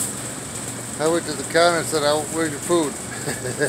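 A middle-aged man talks casually, close by.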